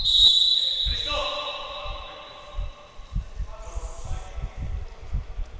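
Men call out to each other across an echoing gym.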